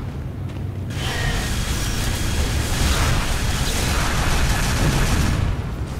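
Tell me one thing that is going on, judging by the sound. A rapid-fire energy gun shoots in quick bursts.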